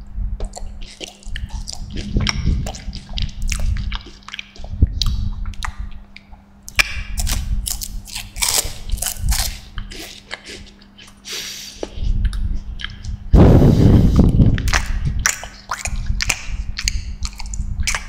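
A young man beatboxes close into a microphone, with sharp clicks and breathy bursts.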